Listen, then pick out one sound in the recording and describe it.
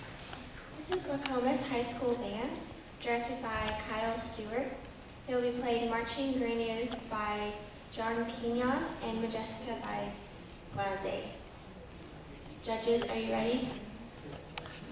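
A young woman sings into a microphone in a large hall.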